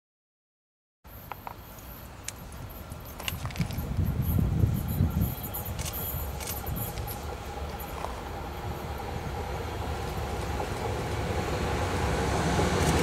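A train approaches along the tracks, rumbling louder as it nears.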